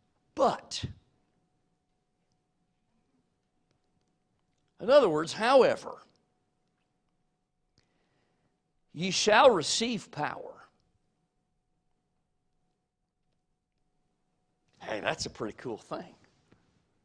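A man speaks slowly and deliberately into a microphone, in short phrases with long pauses.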